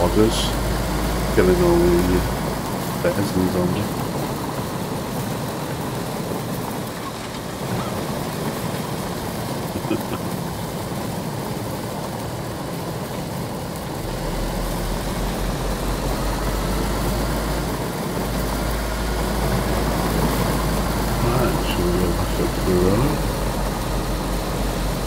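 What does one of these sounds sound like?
A car engine runs steadily.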